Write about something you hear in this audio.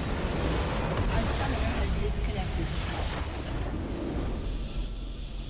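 A huge crystal explodes with a deep rumbling boom.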